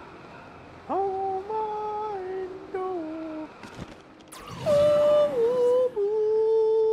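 A man sings drawn-out notes loudly into a microphone, close by.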